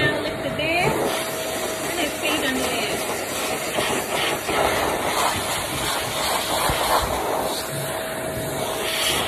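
A pet dryer blows air with a loud steady rush through a hose.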